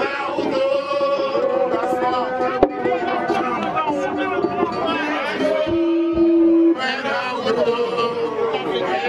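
Young women sing loudly together outdoors.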